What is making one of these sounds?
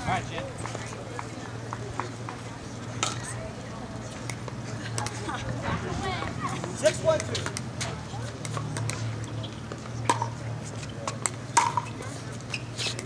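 Paddles strike a plastic ball with sharp pops during a rally outdoors.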